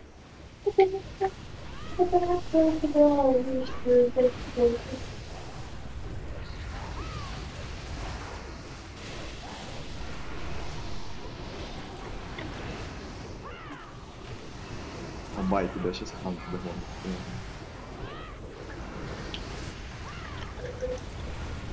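Magic spells whoosh and crackle during a fantasy battle.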